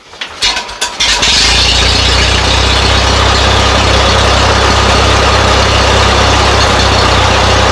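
A tractor engine starts and keeps running with a loud, steady rumble.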